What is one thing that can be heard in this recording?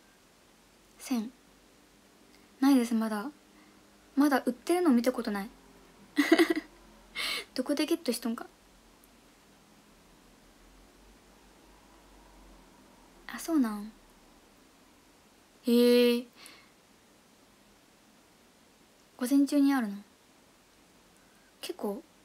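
A young woman speaks casually in short bursts close to a microphone.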